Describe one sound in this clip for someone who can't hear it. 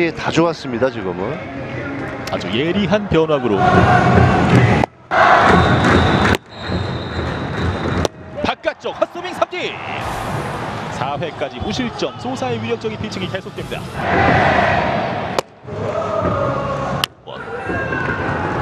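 A crowd in a stadium cheers and chants throughout.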